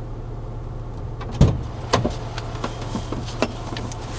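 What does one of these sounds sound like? A van door opens and thuds.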